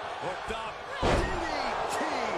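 A heavy body slams onto a wrestling ring mat.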